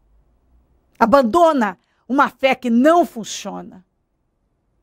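A young woman speaks clearly and calmly into a microphone.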